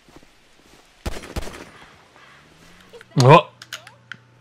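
A wooden sign cracks and thuds as it is knocked loose.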